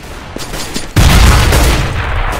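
A grenade bursts and loudly hisses out smoke.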